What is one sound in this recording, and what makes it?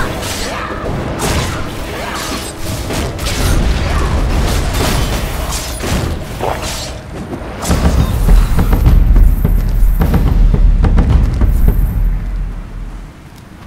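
Sword strikes and magic blasts clash in quick bursts.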